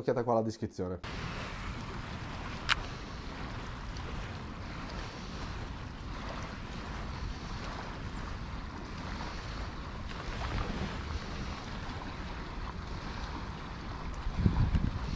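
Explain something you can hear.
Wind blows outdoors over open water.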